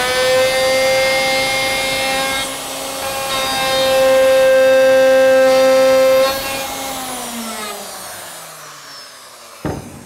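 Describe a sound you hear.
A router whines loudly as it cuts wood, then winds down.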